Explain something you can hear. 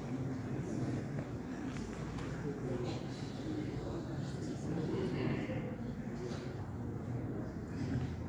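A man speaks quietly nearby in an echoing room.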